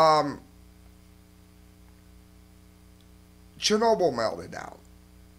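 A man speaks close to a microphone in short bursts.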